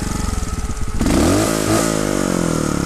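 A motorcycle engine revs up sharply once and settles.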